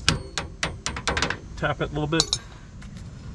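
A hammer taps on metal.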